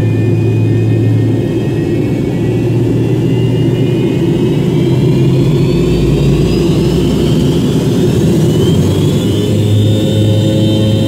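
An airliner's engines whine, rising in pitch as they spool up.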